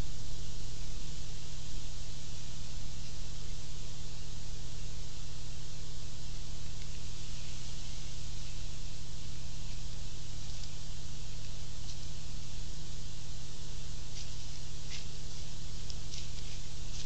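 Deer hooves crunch softly in snow.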